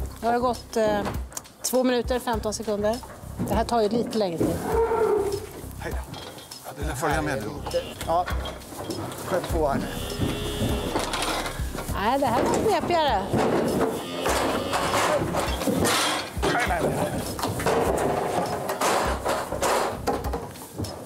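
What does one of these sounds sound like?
A man talks close by, with animation.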